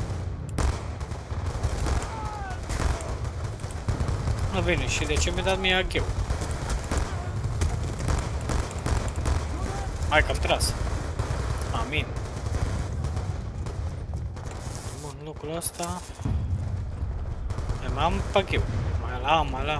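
Pistol shots fire in rapid bursts.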